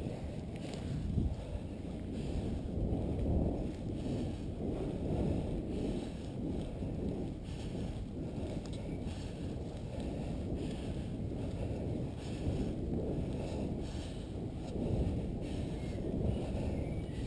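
Wind rumbles and buffets loudly against a moving microphone.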